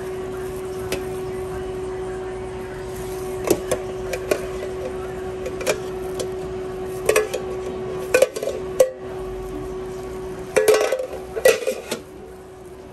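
A metal ladle clinks against a metal container.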